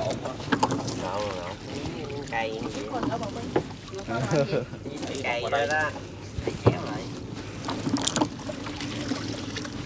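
Water splashes as a net is pulled from it.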